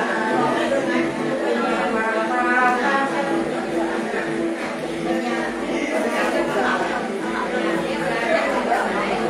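An elderly woman sings in a slow, chanting voice close by.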